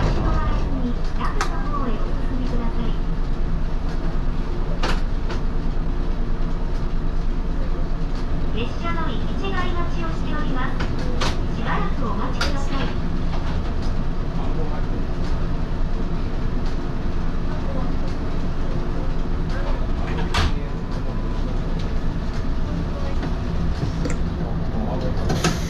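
A train's motor hums steadily while standing still.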